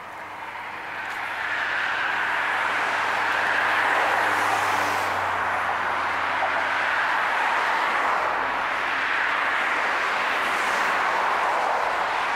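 Cars drive past, tyres rushing on the road.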